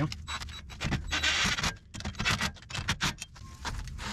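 A cordless impact wrench whirs and rattles as it tightens nuts.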